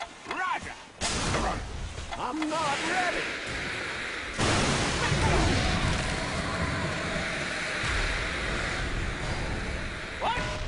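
Fantasy battle sound effects clash and burst.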